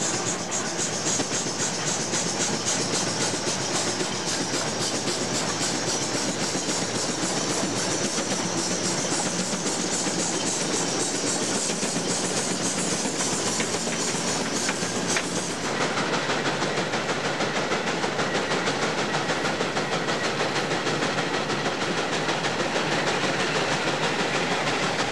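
A steam traction engine chugs nearby with quick rhythmic puffs.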